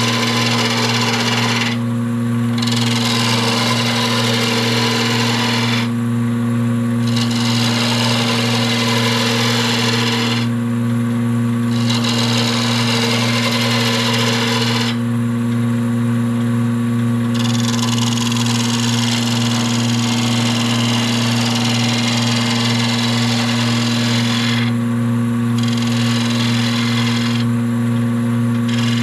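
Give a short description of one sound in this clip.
A chisel scrapes against spinning wood in bursts of hissing.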